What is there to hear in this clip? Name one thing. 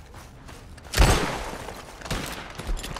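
A revolver fires once and the shot echoes away.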